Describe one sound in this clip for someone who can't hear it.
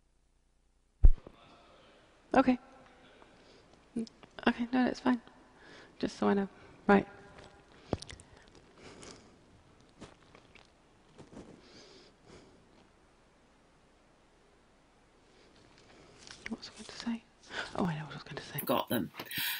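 A woman speaks calmly through a headset microphone.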